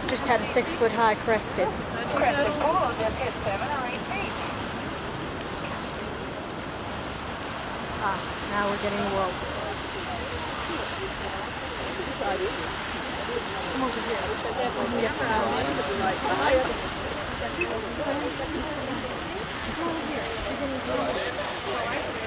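Shallow geyser runoff trickles over rough ground.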